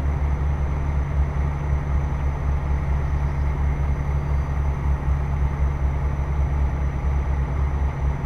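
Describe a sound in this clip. A truck engine rumbles steadily at a low pitch.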